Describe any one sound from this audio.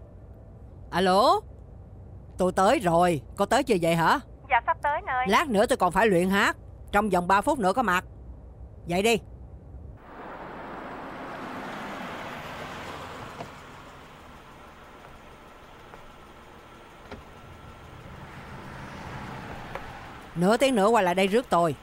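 A middle-aged woman talks calmly on a phone, close by.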